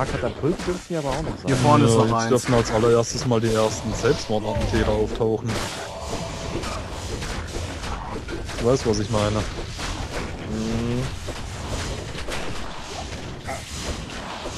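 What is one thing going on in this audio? Spells and weapons clash in a game battle with bursts and crackles.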